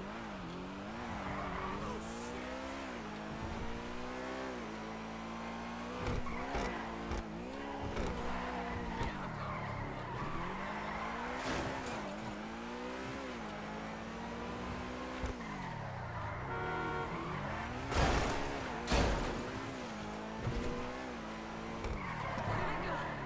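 A sports car engine revs up and down as the car speeds along.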